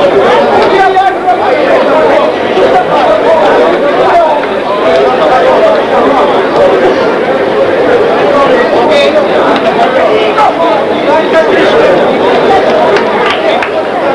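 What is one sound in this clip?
A man referee speaks instructions up close.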